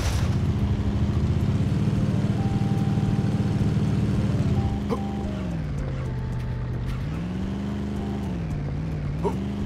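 A small motor engine drones, its pitch dropping and rising again.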